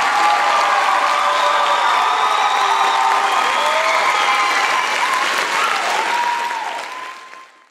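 A large choir sings in an echoing hall, the voices slowly fading away at the end.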